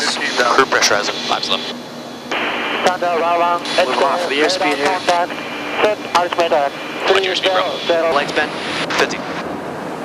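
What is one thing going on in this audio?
A man speaks over an aircraft intercom.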